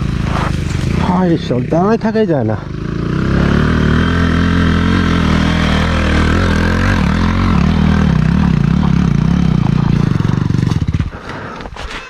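A small single-cylinder motorcycle engine labours as the bike climbs a dirt track and draws closer.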